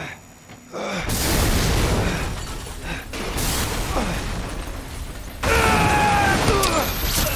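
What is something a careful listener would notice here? A loud explosion roars and rumbles.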